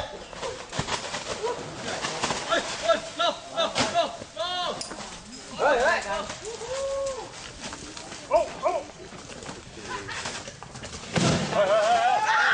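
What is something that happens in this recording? Tigers growl and snarl as they play-fight.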